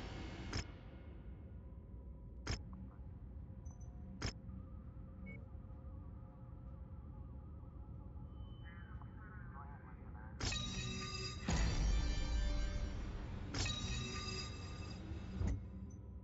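Interface buttons click sharply now and then.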